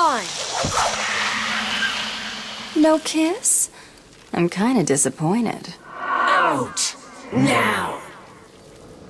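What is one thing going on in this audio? A woman shouts angrily.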